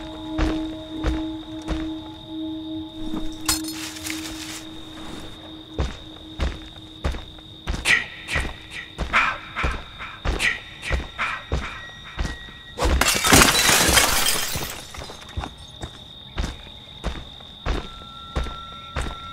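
Heavy footsteps thud steadily on soft ground.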